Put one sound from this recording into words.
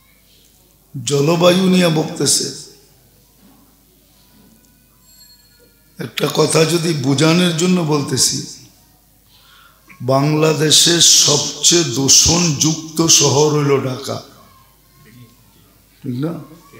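An elderly man preaches with animation through a microphone, in bursts with pauses.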